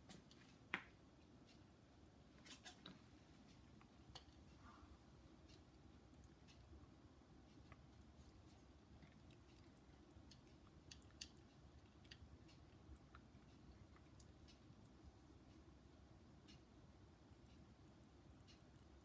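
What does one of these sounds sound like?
A small animal crunches dry food pellets with quick, crisp clicks.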